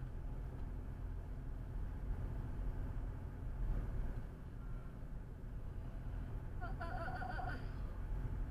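A car engine hums and tyres roll steadily on a road, heard from inside the car.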